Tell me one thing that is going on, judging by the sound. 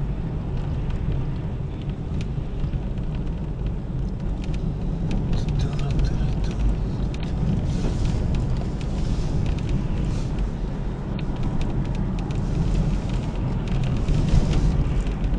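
Small items rattle and tick inside the car.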